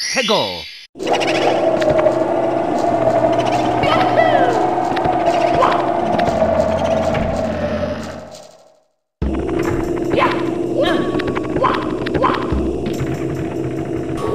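Video game music plays with a steady tune.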